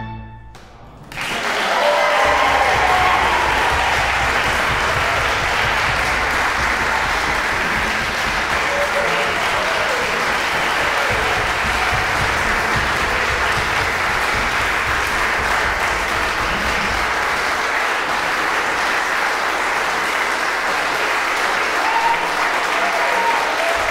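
An audience applauds loudly and steadily.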